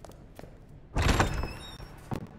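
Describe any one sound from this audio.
A heavy wooden door bangs open.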